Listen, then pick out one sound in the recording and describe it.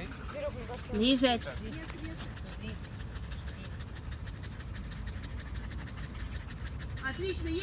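Several dogs pant nearby.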